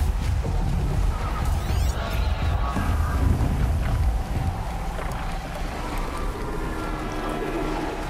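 Strong wind roars in a blizzard.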